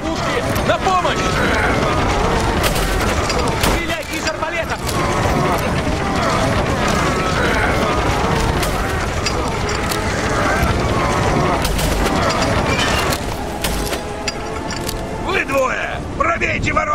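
Fires crackle and roar.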